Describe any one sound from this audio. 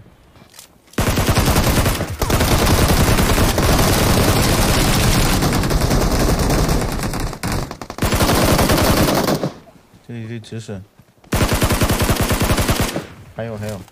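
Rapid gunfire rattles loudly in long bursts.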